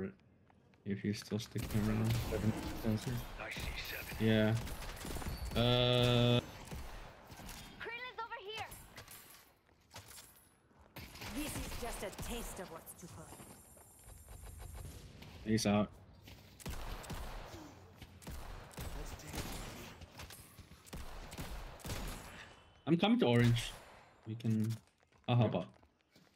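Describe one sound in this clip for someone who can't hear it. Game gunfire and magic blasts crackle and boom in quick bursts.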